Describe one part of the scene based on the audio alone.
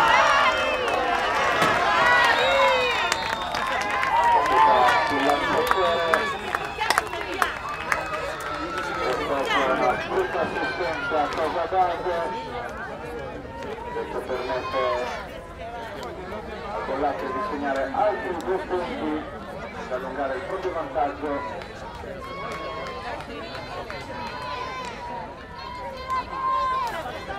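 Young women shout and cheer across an open field.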